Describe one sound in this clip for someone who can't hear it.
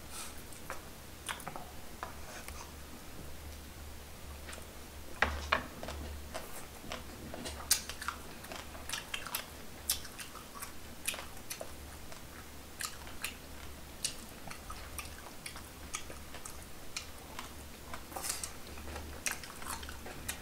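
Two people chew and slurp food close to a microphone.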